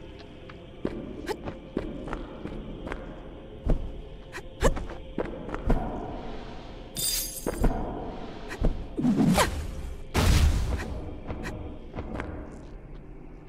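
Game sound effects of sword slashes and hits ring out sharply.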